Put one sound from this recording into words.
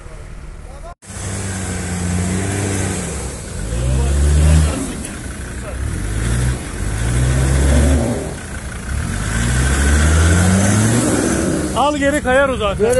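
A car engine revs hard, rising and falling repeatedly.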